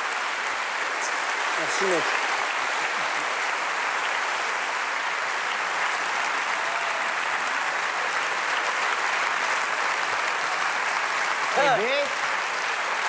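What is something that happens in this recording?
A large audience cheers and whistles.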